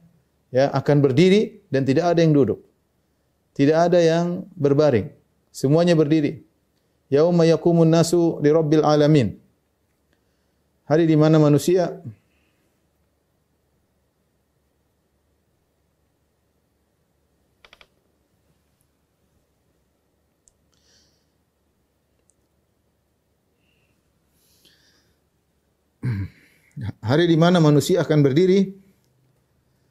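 A man speaks calmly and clearly into a close microphone, pausing often.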